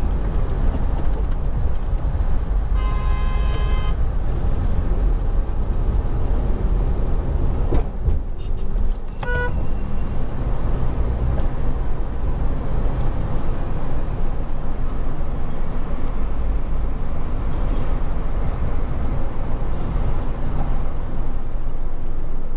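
Tyres roll over the road with a low rumble.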